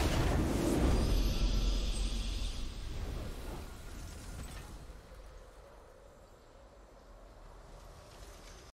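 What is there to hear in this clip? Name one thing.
A triumphant fanfare swells and then slowly fades away.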